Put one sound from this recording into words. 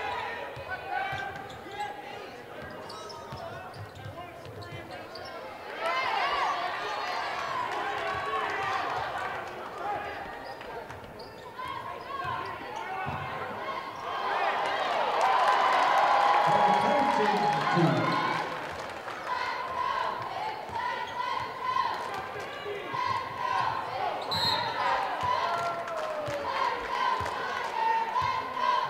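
A basketball thumps as it is dribbled on the floor.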